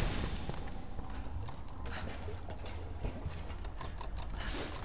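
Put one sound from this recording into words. Hands and boots knock and scuff against wood during a climb.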